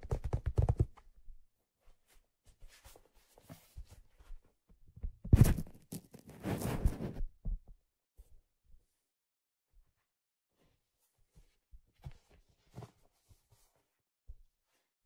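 A hat brim rustles and brushes as it is turned in the hands.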